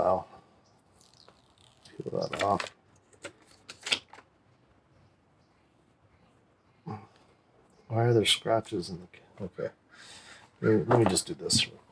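A cardboard box lid slides off and scrapes softly.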